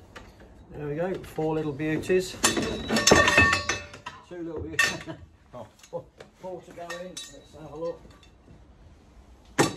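Metal bars clatter and clank together.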